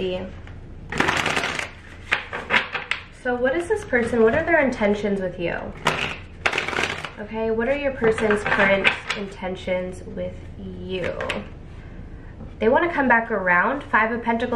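Playing cards shuffle and flick softly between hands.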